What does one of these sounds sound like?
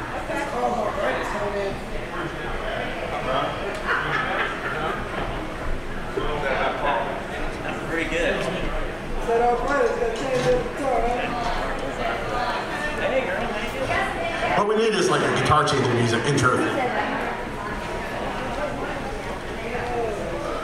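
An electric guitar plays a few loose notes through an amplifier.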